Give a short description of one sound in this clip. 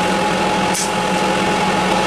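A TIG welding arc buzzes and hisses.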